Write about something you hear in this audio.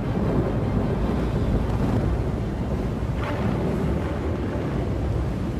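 A spacecraft engine rumbles low and steady.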